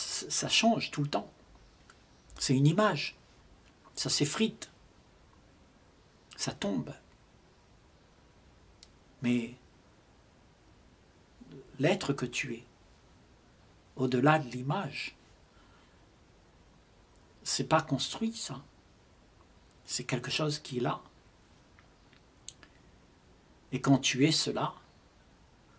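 An elderly man speaks calmly and slowly into a nearby microphone, pausing between short phrases.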